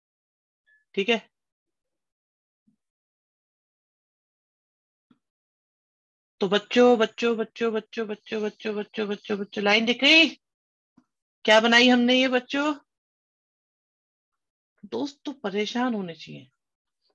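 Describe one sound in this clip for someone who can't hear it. A man speaks calmly and explains, heard close through a microphone.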